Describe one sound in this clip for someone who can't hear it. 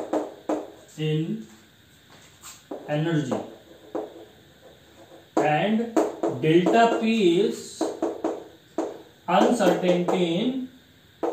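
A man speaks calmly in an explanatory tone, close by.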